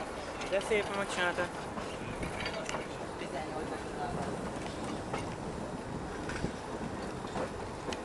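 A tram rumbles and clatters along the rails.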